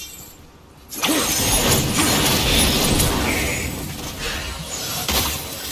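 A burning chained blade swings with a loud fiery roar.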